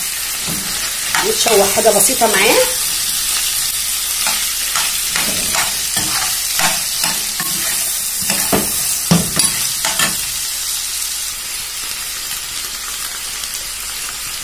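Food sizzles steadily in a hot frying pan.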